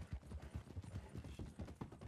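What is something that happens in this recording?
A horse's hooves clatter across a wooden bridge.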